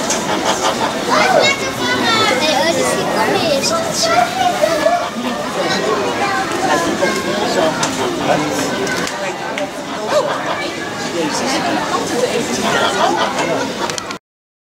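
Children and adults chatter close by.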